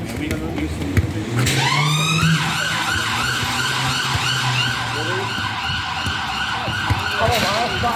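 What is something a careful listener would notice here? A football thuds as it is kicked on a hard outdoor court.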